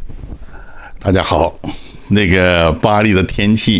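An older man speaks animatedly into a handheld microphone, close by.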